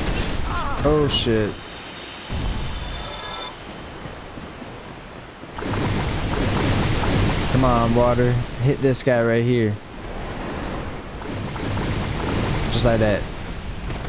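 A sword swishes and strikes with sharp clangs.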